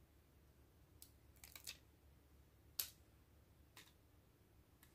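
A sticker's backing peels off with a light crackle.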